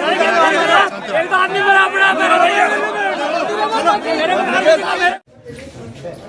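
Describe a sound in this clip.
A crowd of men talks loudly and excitedly close by.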